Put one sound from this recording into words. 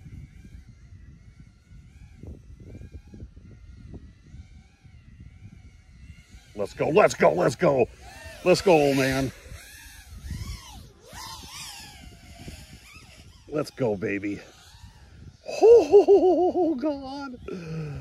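A small drone's propellers whine and buzz as it flies fast.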